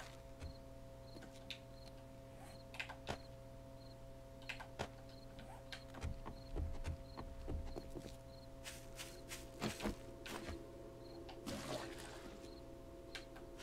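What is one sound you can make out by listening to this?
A pickaxe strikes stone and wood.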